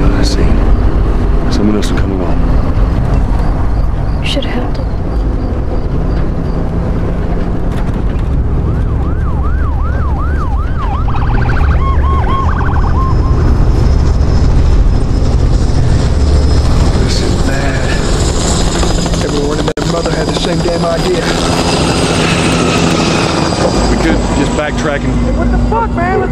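Men talk tensely inside the car.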